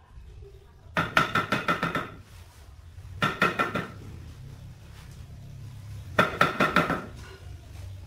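A trowel taps rapidly against ceramic tile.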